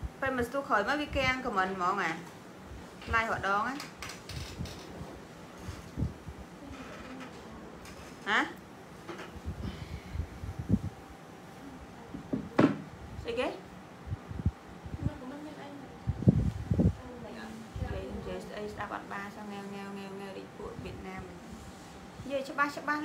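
A young woman speaks with animation into a nearby microphone.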